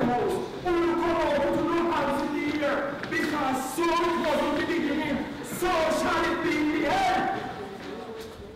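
A young woman speaks in a distressed, pleading voice close by.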